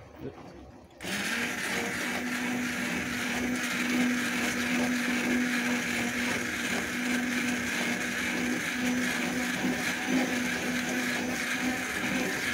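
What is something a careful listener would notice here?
Sauce bubbles and sizzles in a pan.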